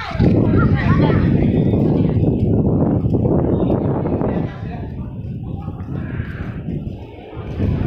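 Young men and women chatter in the distance outdoors.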